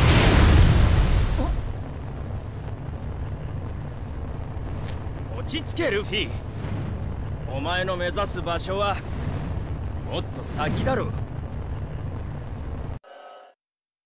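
Flames roar with a loud whoosh, then keep rumbling low.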